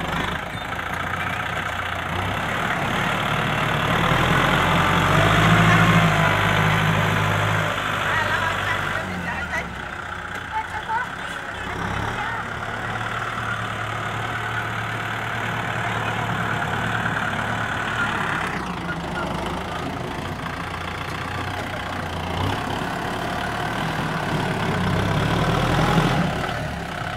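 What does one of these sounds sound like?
A tractor blade scrapes and pushes dirt.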